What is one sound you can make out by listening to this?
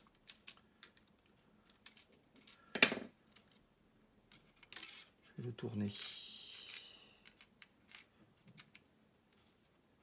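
Plastic parts click and tap as they are handled and pressed into place.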